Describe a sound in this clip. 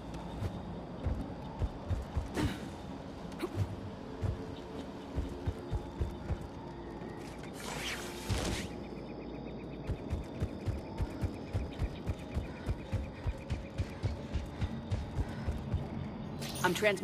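Heavy footsteps thud quickly on a hard floor.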